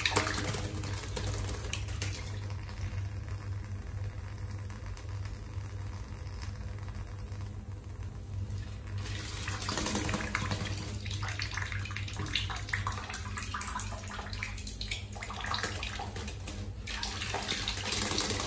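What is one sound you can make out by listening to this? A small bird splashes and flutters in shallow water.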